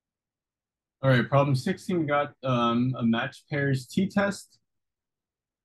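A man speaks calmly and explains into a close microphone.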